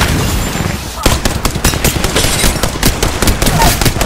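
Gunfire rattles in rapid, loud bursts.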